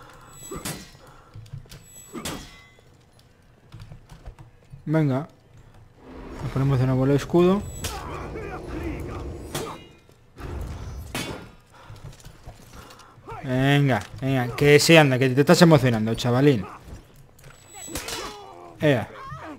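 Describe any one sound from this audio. Swords clash and clang in a video game fight.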